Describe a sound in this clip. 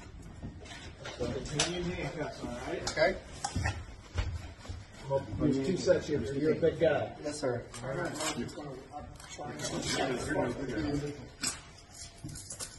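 A man talks nearby in a firm, calm voice.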